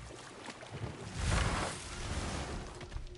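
A wooden boat scrapes as it runs aground.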